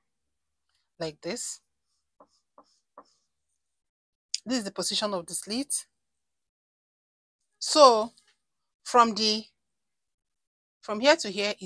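A woman speaks calmly and close by, in short phrases with pauses.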